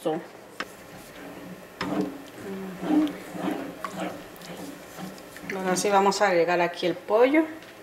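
A wooden spoon stirs thick sauce in a pot.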